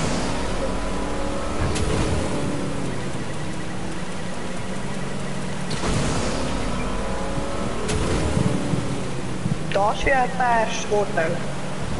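Water splashes and sprays behind a speeding boat.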